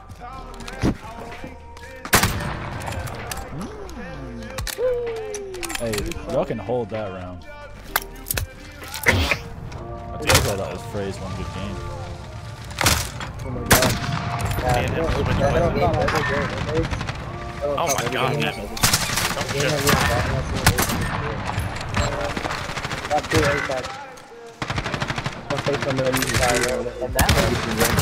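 Gunshots crack sharply, one at a time.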